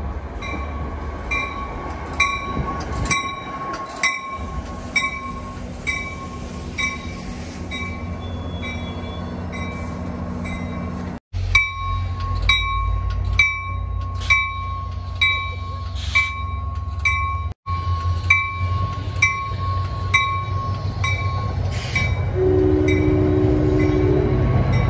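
A train rolls past on the tracks with a low rumble.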